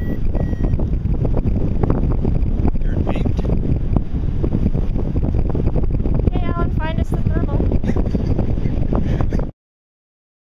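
Strong wind roars and buffets against a microphone.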